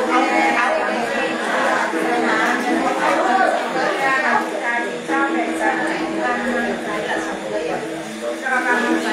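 An elderly woman plays a bowed two-string fiddle up close.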